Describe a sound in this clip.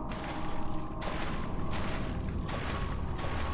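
Water splashes as a person wades through it.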